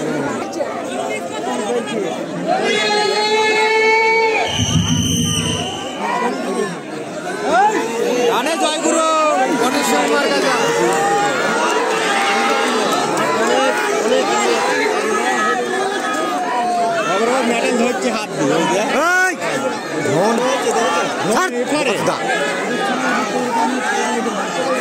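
A large outdoor crowd cheers and shouts excitedly.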